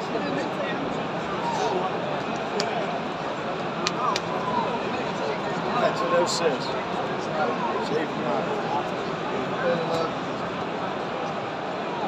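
A large stadium crowd murmurs and chatters all around.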